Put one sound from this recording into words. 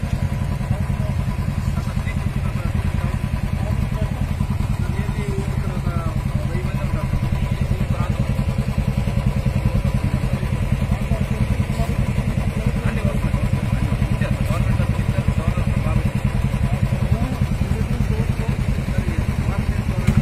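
Men talk nearby over the engines.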